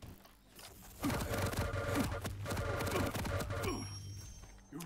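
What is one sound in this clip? A crackling electric beam weapon buzzes in rapid bursts.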